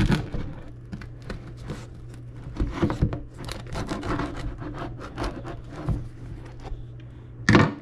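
A knife saws through a crusty loaf of bread with a rasping crackle.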